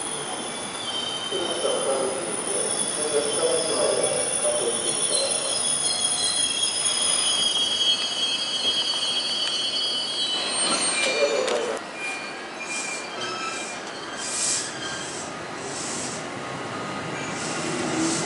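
Train wheels clatter and rumble over the rails.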